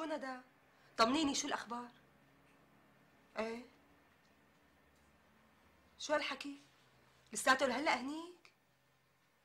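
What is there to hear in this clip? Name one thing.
A young woman talks on the phone in short bursts, close by.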